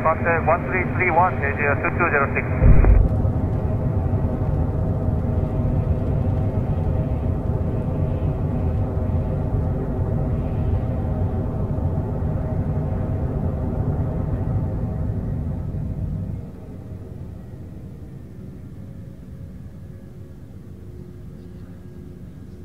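Aircraft wheels rumble on the runway.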